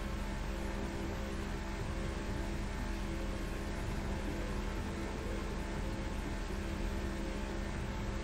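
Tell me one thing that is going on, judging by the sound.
A speedboat engine roars steadily.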